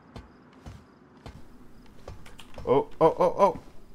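Hands clank on a metal ladder while climbing.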